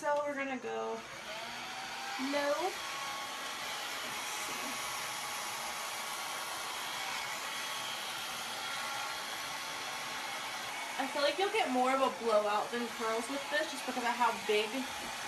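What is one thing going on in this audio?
A hair dryer blows with a steady whirring hiss.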